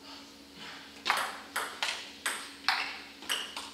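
A ping pong ball clicks back and forth across a table.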